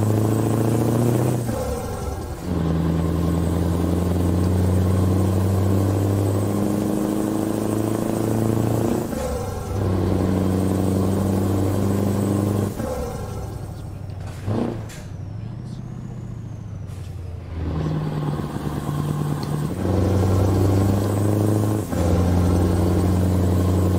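A truck engine hums steadily and changes pitch as gears shift.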